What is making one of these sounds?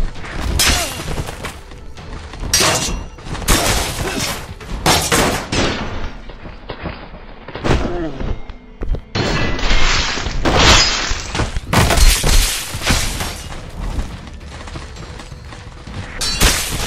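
Metal blades clash and strike with sharp, heavy hits.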